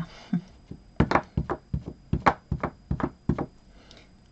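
An ink pad taps repeatedly against a stamp with quick knocks.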